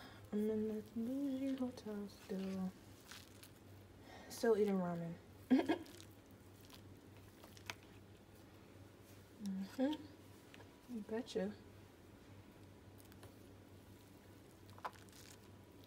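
A plastic fork stirs and lifts noodles in a paper cup.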